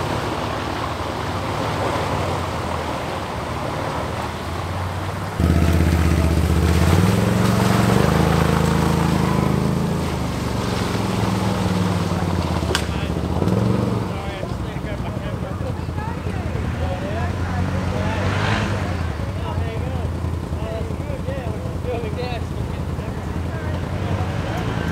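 A four-wheel drive engine rumbles at a distance.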